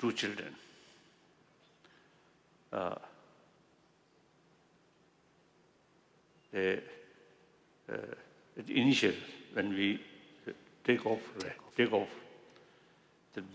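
An elderly man speaks with animation through a microphone, in short bursts with pauses, in a large hall.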